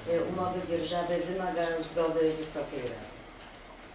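A man speaks calmly through a microphone in a room.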